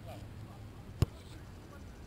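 A soccer ball is kicked with a sharp thump.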